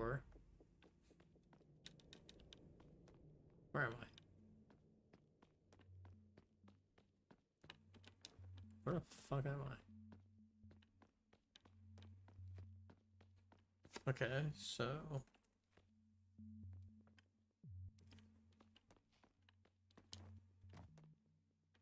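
Footsteps tap steadily on a hard tiled floor.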